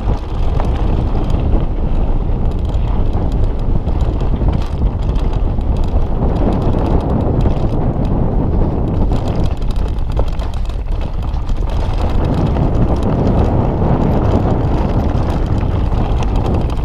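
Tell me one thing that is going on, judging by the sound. Bicycle tyres rumble over a bumpy dirt trail.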